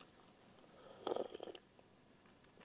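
A man slurps a drink noisily.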